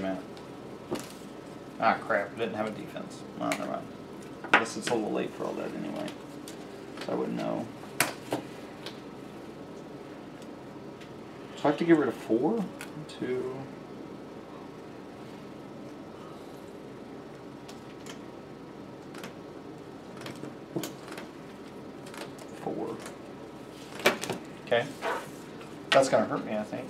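Playing cards are shuffled and laid down on a table.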